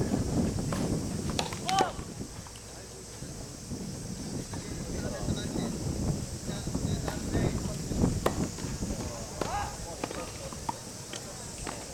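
A tennis ball pops off a racket outdoors.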